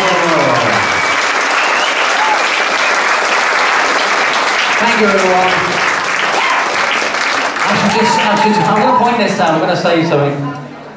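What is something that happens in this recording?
An electric guitar strums chords.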